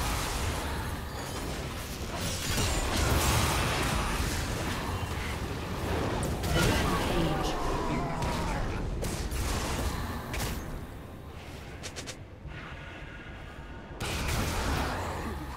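Fantasy spell effects whoosh and crackle in quick bursts.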